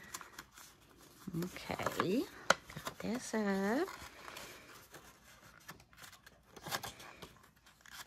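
Paper rustles and crinkles as it is folded by hand.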